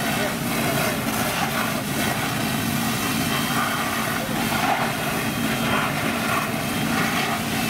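A fire engine's pump hums steadily nearby.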